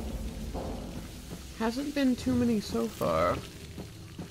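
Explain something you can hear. An explosion bursts close by, scattering debris.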